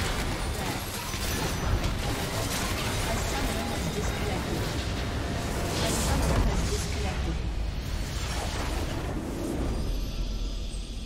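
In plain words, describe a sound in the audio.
Game combat effects crash and blast loudly.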